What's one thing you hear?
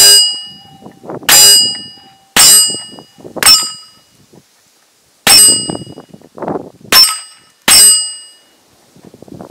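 Bullets strike a steel target with sharp, ringing metallic pings.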